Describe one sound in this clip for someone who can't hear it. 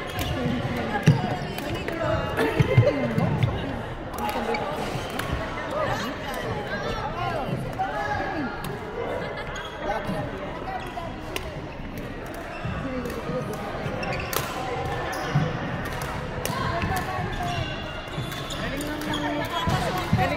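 Shuttlecocks are struck by rackets with sharp pops in a large echoing hall.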